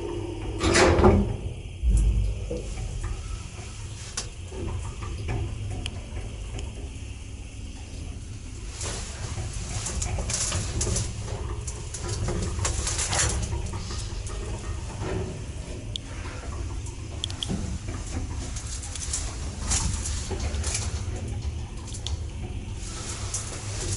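An elevator car hums and rumbles steadily as it moves.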